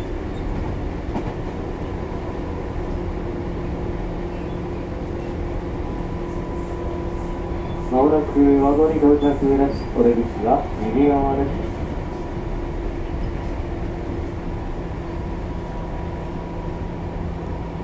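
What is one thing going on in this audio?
An electric train hums steadily as it idles on the tracks.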